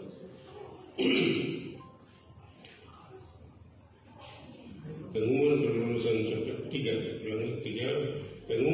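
A man reads out aloud through a microphone.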